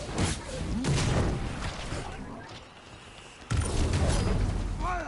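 A man talks through a microphone.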